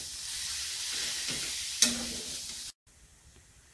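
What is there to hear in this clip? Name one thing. Food sizzles and hisses loudly in a hot pan.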